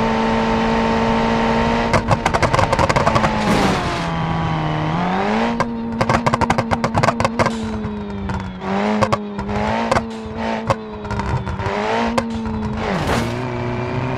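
A car engine hums steadily, its pitch dipping and rising as the car changes speed.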